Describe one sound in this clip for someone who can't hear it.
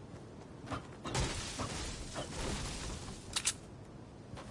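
A pickaxe hacks into a leafy bush with a loud rustle.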